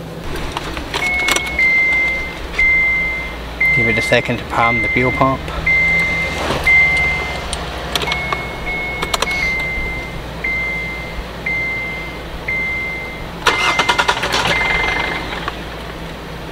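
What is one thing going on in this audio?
A car's door-open warning chime beeps over and over.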